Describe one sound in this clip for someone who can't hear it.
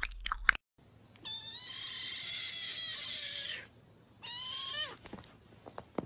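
A kitten mews loudly and repeatedly.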